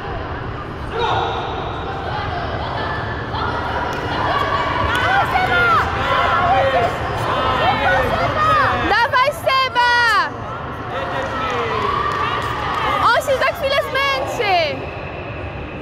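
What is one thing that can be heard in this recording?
Children shout and cheer loudly in a large echoing hall.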